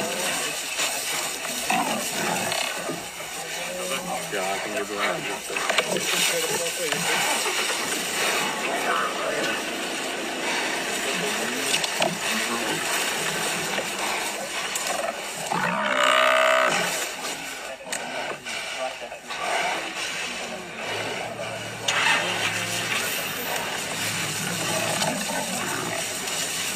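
Lions growl and snarl close by.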